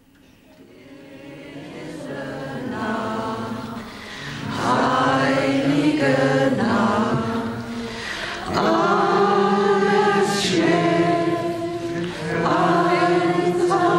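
A crowd of people sings together, swelling louder.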